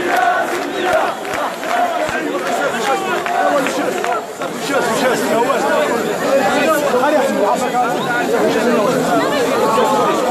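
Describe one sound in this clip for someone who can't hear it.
A dense crowd of men and women shouts and chatters loudly all around.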